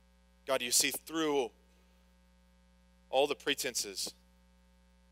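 A man speaks slowly in short phrases through a microphone in a large hall.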